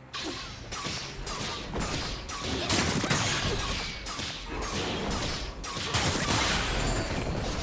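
Game spell blasts crackle and boom in a fast fight.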